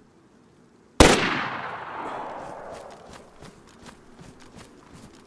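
A rifle fires a single loud shot that echoes and rolls away across open country.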